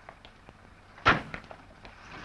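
A car door slams shut.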